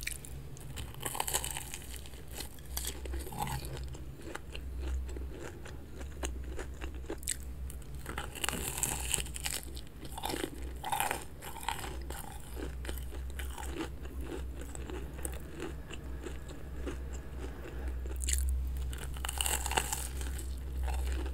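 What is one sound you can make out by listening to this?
A young woman bites into a crunchy coated snack close to a microphone.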